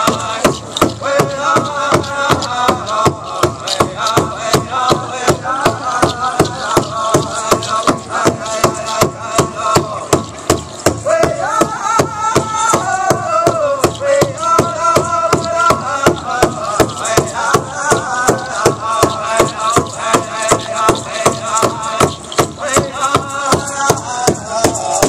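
Bells on a dancer's costume jingle in a steady rhythm.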